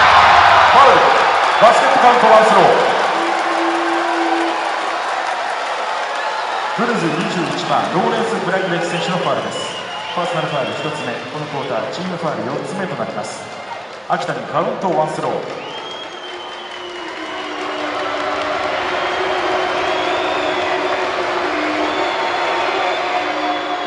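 A large crowd cheers and chatters in an echoing arena.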